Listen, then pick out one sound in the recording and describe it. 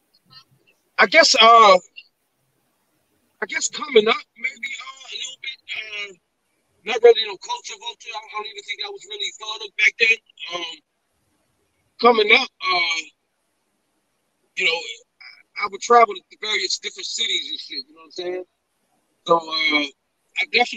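Men talk with animation over an online call.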